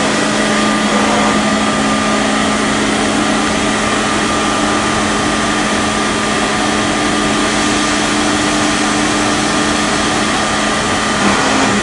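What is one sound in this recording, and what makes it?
A machine hums steadily with a loud whirring noise.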